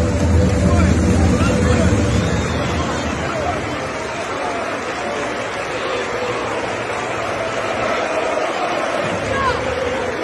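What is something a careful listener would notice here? Fans clap their hands.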